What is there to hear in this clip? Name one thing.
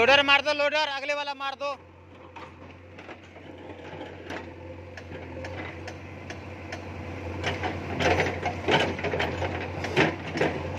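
A backhoe engine runs with a steady low rumble.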